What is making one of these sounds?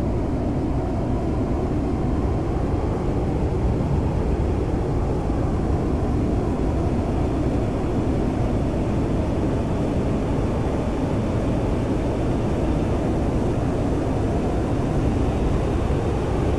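A jet engine roars steadily, heard from close by.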